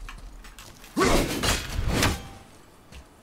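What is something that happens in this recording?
An axe swings through the air with a heavy whoosh.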